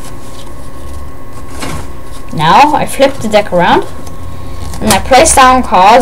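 A deck of playing cards is shuffled with a quick riffle.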